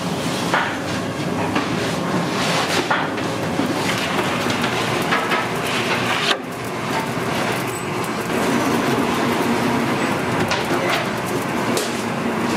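Wooden boards of dough thump onto a metal rack.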